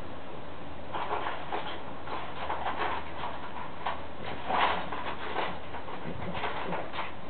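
A French bulldog snorts and grunts.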